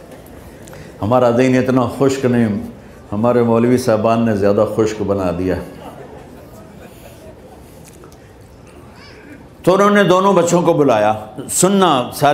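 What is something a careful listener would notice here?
An elderly man speaks slowly and with feeling through a microphone.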